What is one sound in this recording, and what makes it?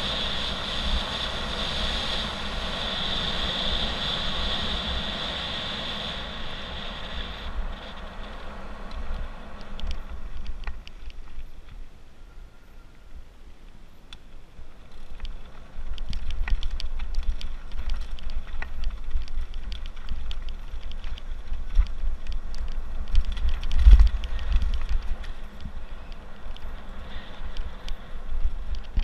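Wind rumbles and buffets close by, outdoors.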